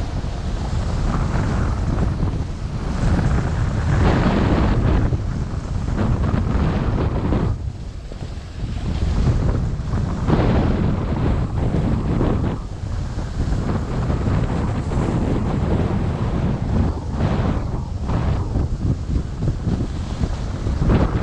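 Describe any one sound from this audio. Wind rushes past, loud and gusting.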